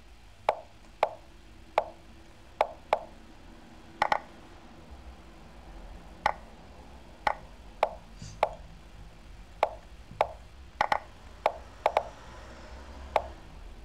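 Short, sharp clicks sound as chess pieces are moved, again and again at an uneven pace.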